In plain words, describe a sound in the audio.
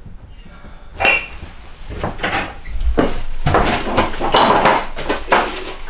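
Jars and objects clatter and knock in a cupboard.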